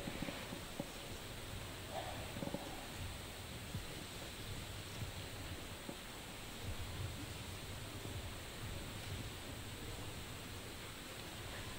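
Game tiles click softly as they are shuffled on a rack.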